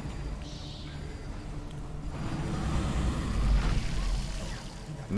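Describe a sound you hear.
Magic spells whoosh and crackle loudly.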